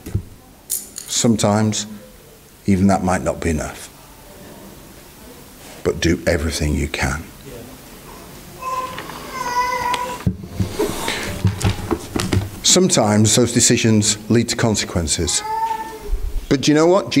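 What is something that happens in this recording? A middle-aged man speaks into a microphone with animated pauses, in a slightly echoing room.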